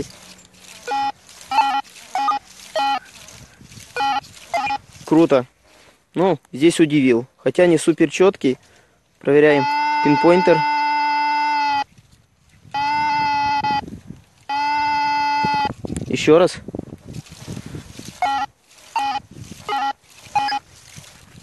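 A metal detector beeps in short bursts.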